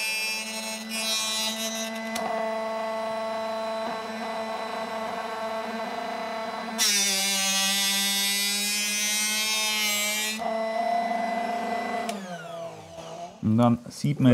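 A small electric motor hums steadily, then winds down.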